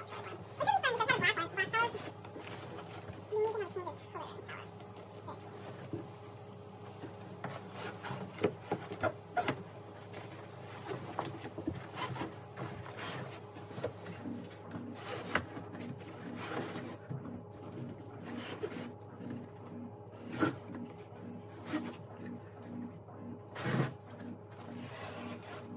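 Objects knock and thud against a cardboard box.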